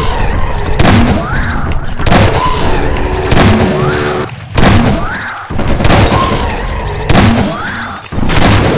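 A shotgun fires loud, booming blasts again and again.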